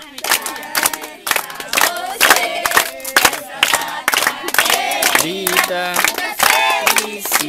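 A group of children sing together loudly.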